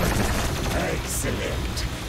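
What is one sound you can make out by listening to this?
A flamethrower roars.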